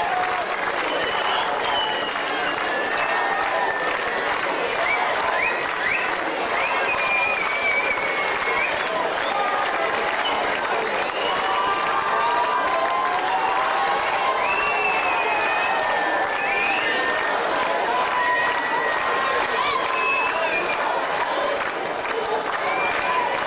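A large crowd chatters and cheers loudly.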